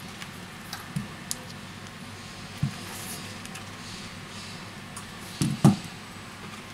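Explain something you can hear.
Small metal parts click and tap against each other.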